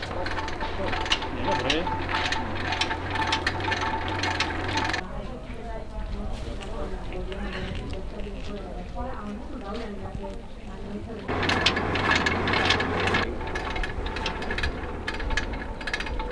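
A forge fire crackles and hisses.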